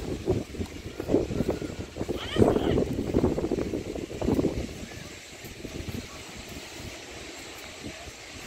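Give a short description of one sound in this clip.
Strong wind gusts and rumbles across the microphone outdoors.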